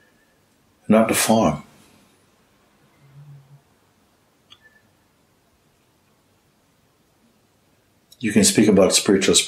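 An older man speaks calmly and expressively, close by, with pauses.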